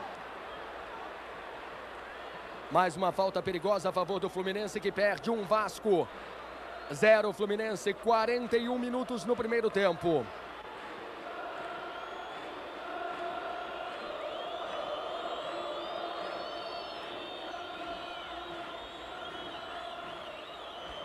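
A large stadium crowd roars steadily in the distance.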